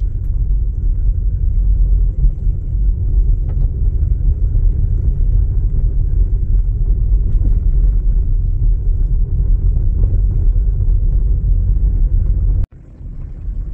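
A vehicle rumbles along a bumpy gravel road.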